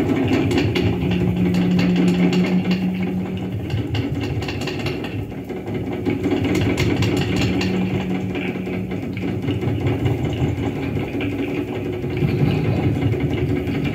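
Electronic music with a low droning hum and crackling noise plays through loudspeakers in a large hall.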